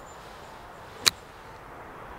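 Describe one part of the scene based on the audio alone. A golf club strikes sand and ball with a sharp thud.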